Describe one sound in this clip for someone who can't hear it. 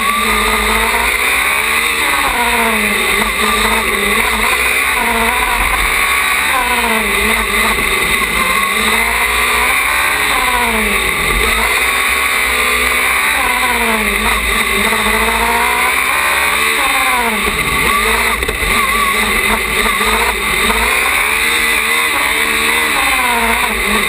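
A racing car engine roars close by, revving up and down through the gears.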